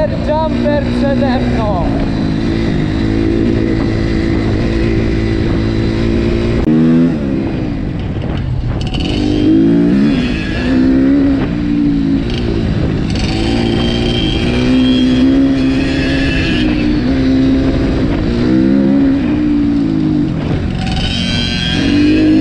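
A dirt bike engine revs up and down loudly as it rides.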